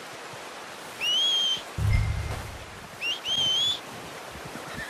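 Someone whistles loudly twice with a rising note.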